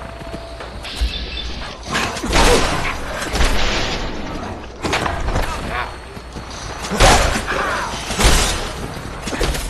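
Heavy blows thud during a fight.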